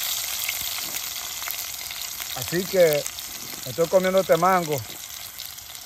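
Potatoes sizzle in oil in a pan.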